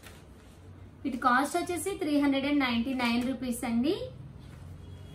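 A woman speaks up close with animation.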